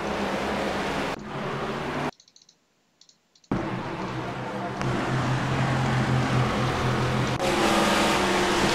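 Racing car engines roar loudly at high speed.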